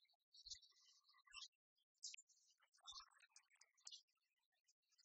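Dice rattle and clatter onto a tray.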